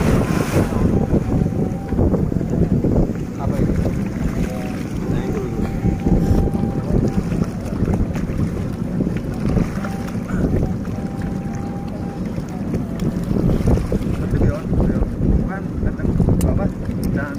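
Water splashes and laps against a boat's side.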